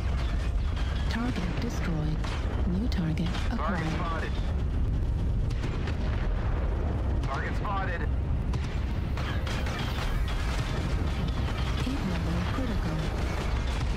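Laser weapons fire in bursts.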